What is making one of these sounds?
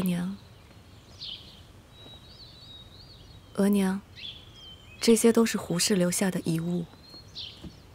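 A young woman speaks softly and respectfully, close by.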